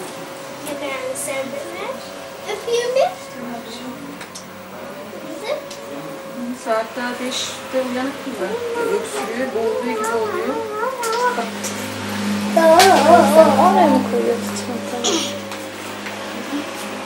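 Children talk and laugh nearby.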